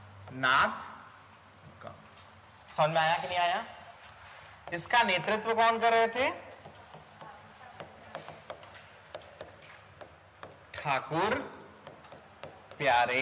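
A marker squeaks faintly on a board.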